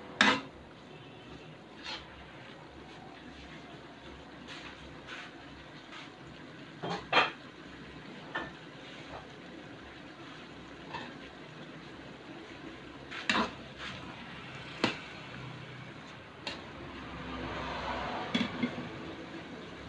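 A metal spoon scrapes and clanks against a wok.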